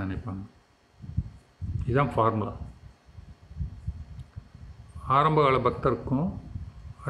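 An elderly man speaks calmly and slowly, close to the microphone.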